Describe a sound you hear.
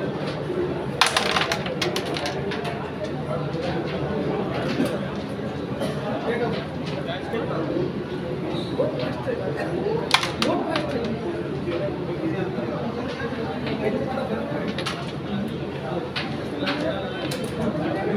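Wooden carrom pieces clack sharply and scatter across a board when flicked.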